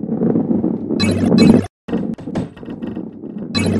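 Wooden blocks clatter as a ball knocks them over.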